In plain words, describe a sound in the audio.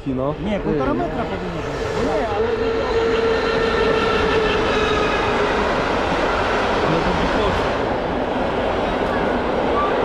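A train rumbles past nearby.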